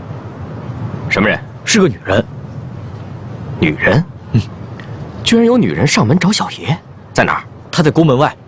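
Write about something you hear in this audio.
A second young man answers with surprise.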